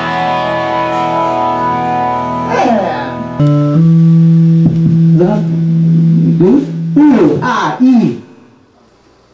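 Electric guitars play loudly in a room.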